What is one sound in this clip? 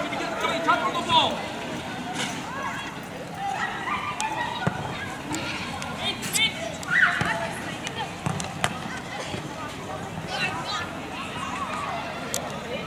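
Young players shout and call to each other across an open outdoor pitch.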